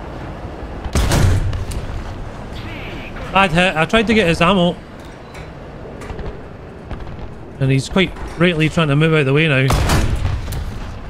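A tank cannon fires with a deep, heavy boom.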